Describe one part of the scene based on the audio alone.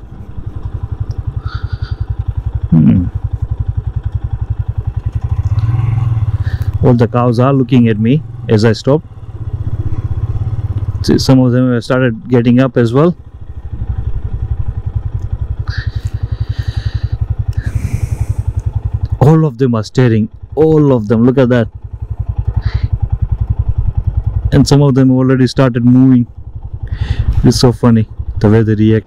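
A motorcycle engine idles with a steady low throb.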